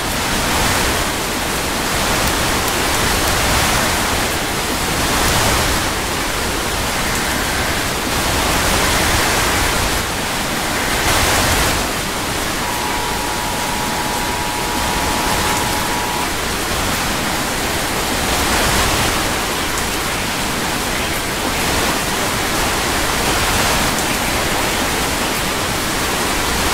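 Strong wind roars steadily, rising and falling in gusts.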